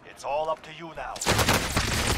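An adult man talks through a headset microphone.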